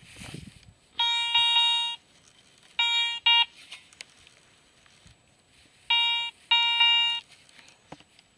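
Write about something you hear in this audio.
A metal detector beeps in short, steady tones.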